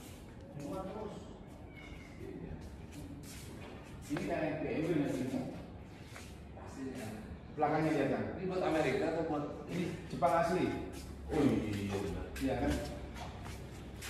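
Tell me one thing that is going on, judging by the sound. A man talks casually nearby in an echoing hall.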